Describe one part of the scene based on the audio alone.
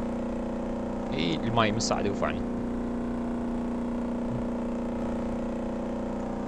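A boat engine drones steadily at speed.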